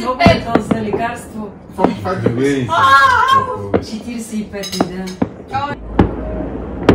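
Adults talk and laugh nearby.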